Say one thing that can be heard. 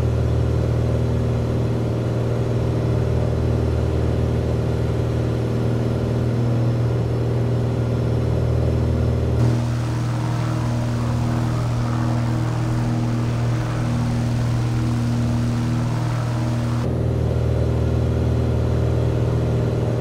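A small propeller plane's engine drones steadily, heard from inside the cockpit.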